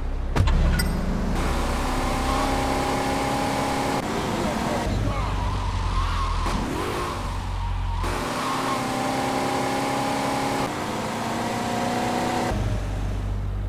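A car engine hums and revs steadily as a car drives along.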